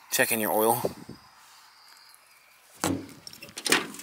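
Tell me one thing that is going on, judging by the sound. A metal compartment door clicks open.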